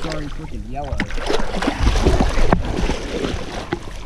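Water splashes as a hand stirs it.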